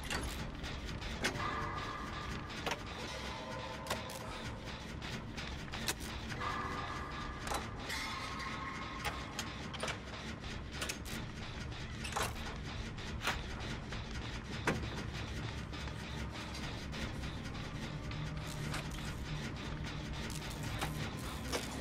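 Metal parts clank and rattle as an engine is repaired.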